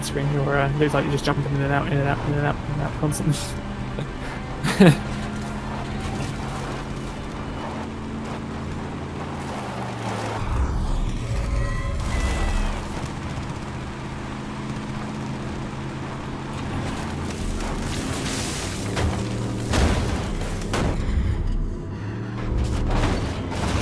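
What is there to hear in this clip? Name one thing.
Tyres rumble over gravel.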